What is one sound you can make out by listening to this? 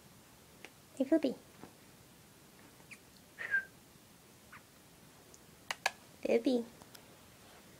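A small dog grumbles and whines in short bursts.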